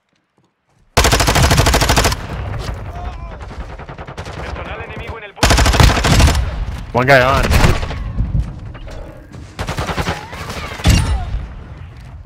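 Gunfire rattles in loud rapid bursts.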